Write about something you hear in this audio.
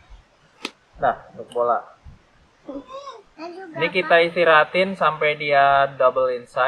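A young child speaks excitedly close by.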